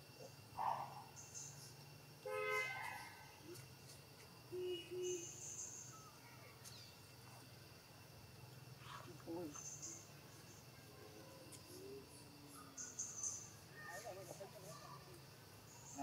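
A baby monkey squeaks and cries.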